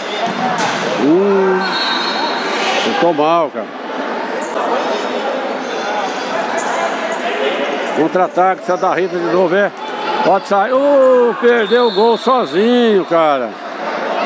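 Men in the crowd shout loudly.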